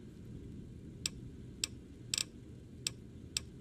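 Short, sharp clicks sound one after another.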